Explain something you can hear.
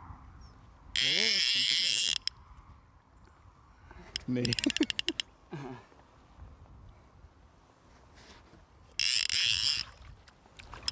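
A fishing reel's drag buzzes loudly in short bursts.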